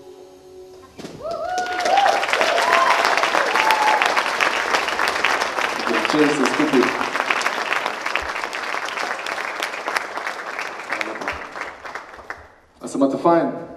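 A large crowd claps and cheers loudly, then the applause fades.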